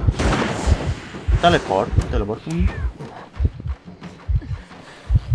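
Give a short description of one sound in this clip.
Footsteps thud at a quick, even pace.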